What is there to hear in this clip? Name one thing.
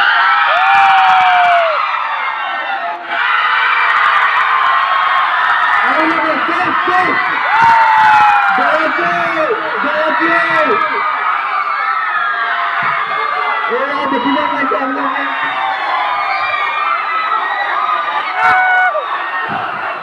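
A crowd of young men and women cheers and shouts loudly.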